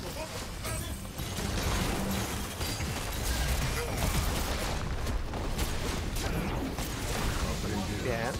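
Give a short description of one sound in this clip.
Spell effects and blows crackle and thud in a fast game battle.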